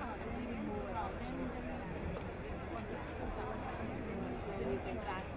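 A marching band plays brass and drums outdoors.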